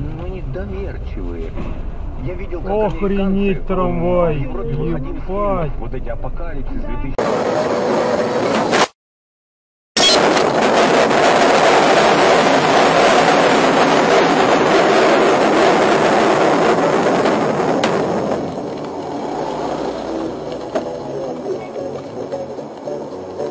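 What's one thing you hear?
A car drives along a road with a steady rumble.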